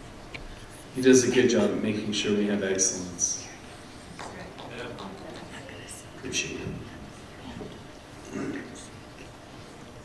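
A man sings into a microphone in an echoing hall.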